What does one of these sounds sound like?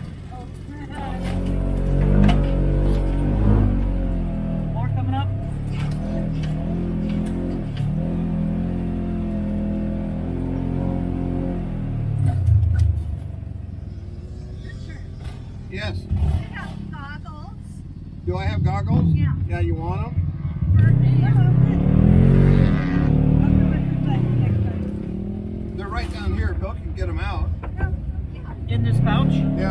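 A quad bike engine revs up and down close by.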